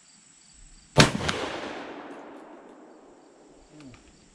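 A shotgun fires a single loud blast that echoes across open ground.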